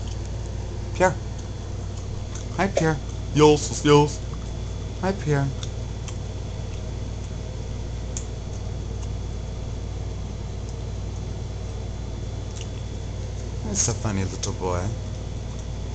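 A cat chatters and chirps in short bursts, close by.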